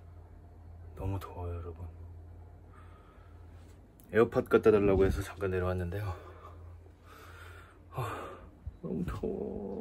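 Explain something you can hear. A young man talks close by in a low, tired voice.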